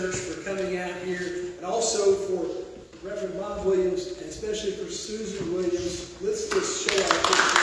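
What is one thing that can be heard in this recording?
A young man speaks calmly into a microphone in an echoing hall.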